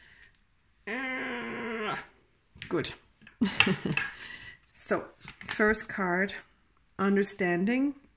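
Playing cards slide and tap against each other as they are spread and gathered.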